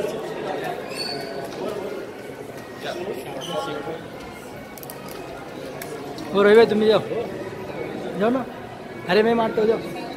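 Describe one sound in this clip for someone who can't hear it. A crowd of men and women chatters and calls out loudly nearby.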